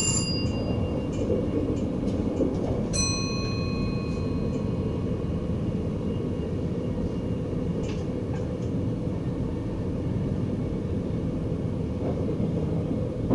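A level crossing bell rings.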